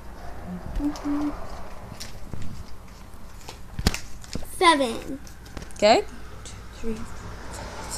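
A young girl speaks in a high, lively voice close by.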